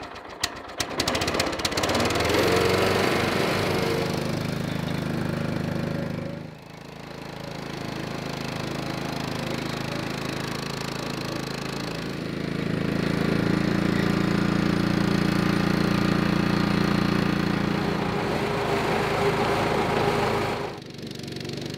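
A small petrol engine rumbles and chugs steadily.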